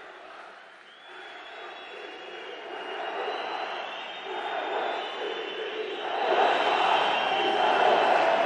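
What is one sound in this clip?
A large crowd cheers and chants in a big echoing hall, growing louder.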